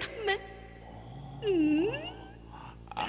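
An elderly man speaks in a low voice.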